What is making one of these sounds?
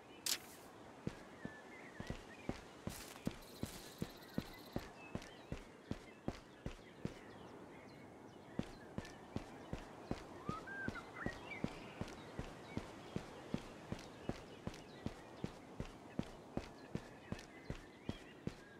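Quick footsteps patter steadily over dirt and stone.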